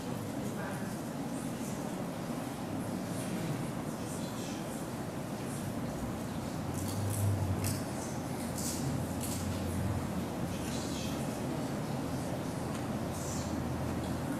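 A crowd of men and women chatter quietly in a large echoing hall.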